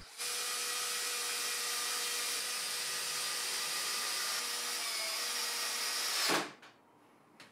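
A power drill whirs steadily as it drives screws into wood.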